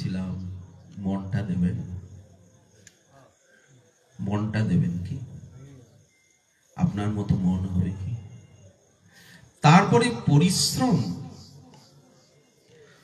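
A middle-aged man speaks with feeling through a microphone, in short phrases with pauses between them.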